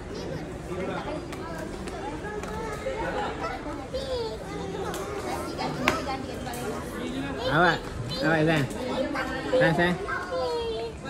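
Several people chatter nearby.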